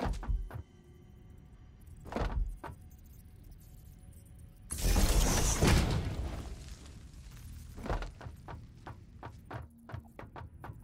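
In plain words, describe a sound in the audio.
Building pieces thud and click into place.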